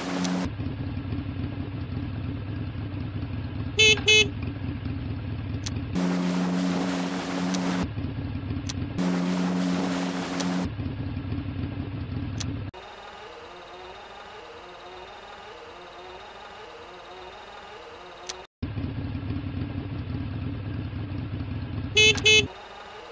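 A small motor scooter engine hums steadily.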